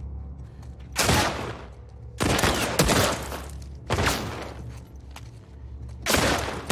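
Pistol shots ring out in short bursts.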